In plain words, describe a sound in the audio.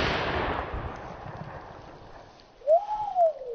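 The echo of a firecracker blast fades away across an open field.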